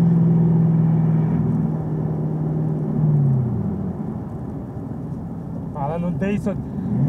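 A car engine hums loudly and winds down as the car slows.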